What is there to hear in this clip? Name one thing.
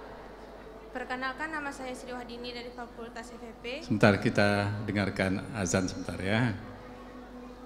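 A woman speaks calmly into a microphone, heard over loudspeakers in a large hall.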